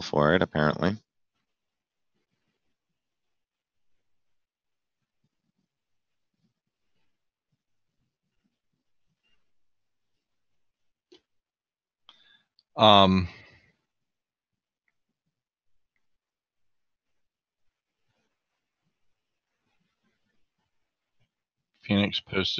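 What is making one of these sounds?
A man speaks in short bursts into a microphone, heard through an online stream.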